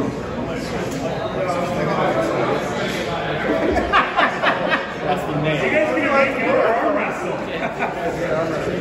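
A man talks calmly up close.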